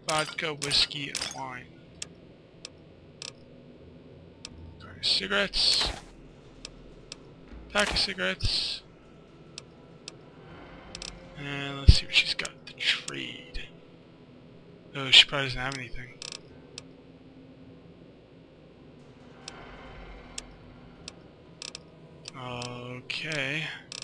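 Short soft clicks tick now and then as menu items are selected.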